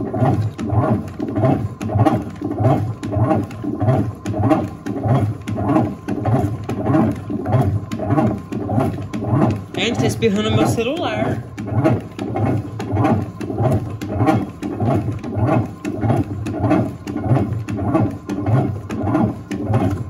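A washing machine agitator churns back and forth in a rhythmic, repeating swish.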